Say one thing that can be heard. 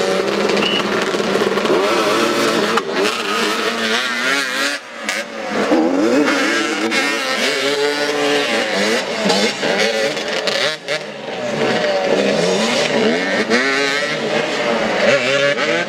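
Several motorcycle engines rev up and down, loud and close, outdoors.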